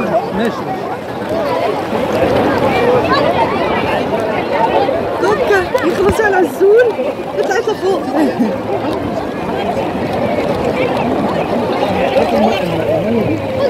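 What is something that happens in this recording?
Many voices of children and adults chatter and shout nearby, outdoors.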